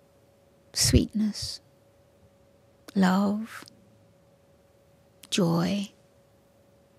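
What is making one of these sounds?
An elderly woman speaks slowly and calmly into a microphone, with long pauses.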